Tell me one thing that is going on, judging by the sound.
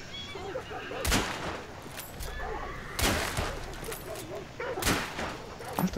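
Pistol shots ring out.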